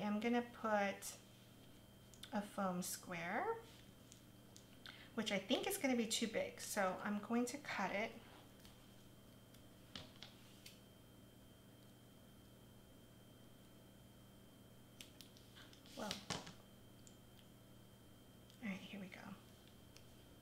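A young woman talks calmly into a nearby microphone.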